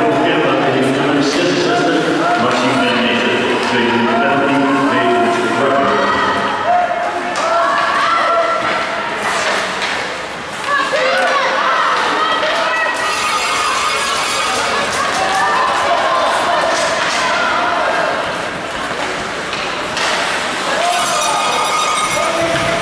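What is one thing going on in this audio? Ice hockey skates scrape and carve on ice in an echoing rink.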